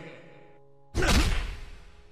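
A kick lands with a heavy thud.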